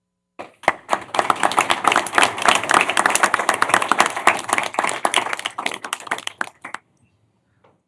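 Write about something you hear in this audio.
A room full of people applauds with dense clapping that fades out.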